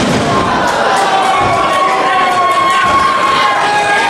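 A wrestler lands with a thud on the ring canvas.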